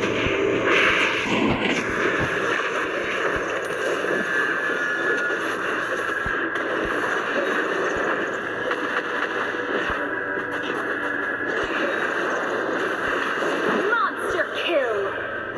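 Fantasy battle sound effects clash and burst.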